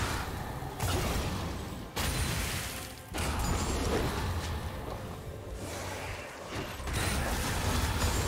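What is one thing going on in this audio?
Video game fight effects clash and blast in quick bursts.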